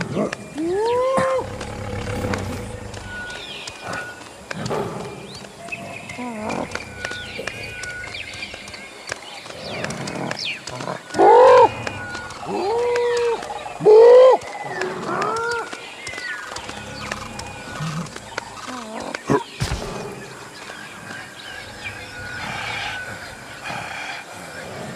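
A goat's hooves clatter and scrape on rock.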